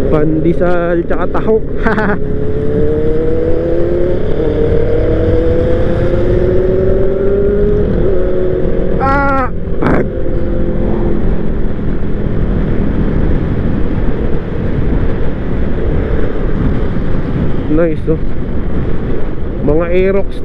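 A scooter engine hums steadily and rises in pitch as it speeds up.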